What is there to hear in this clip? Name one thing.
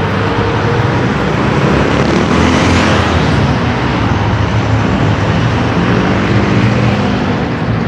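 A vehicle engine rumbles as it passes close by.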